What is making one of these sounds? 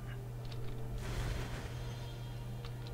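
A soft magical whoosh swells and fades.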